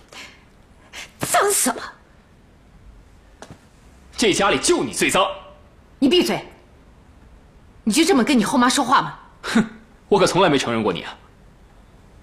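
A young man answers in a tense voice, close by.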